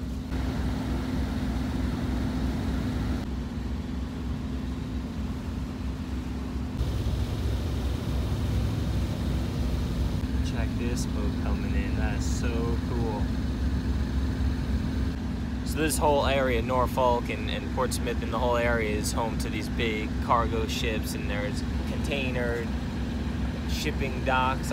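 A boat engine rumbles low and steadily.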